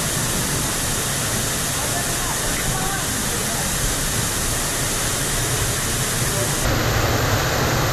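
A waterfall roars steadily into a rock pool.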